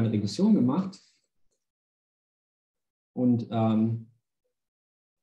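A man speaks calmly and briefly into a close microphone, pausing between phrases.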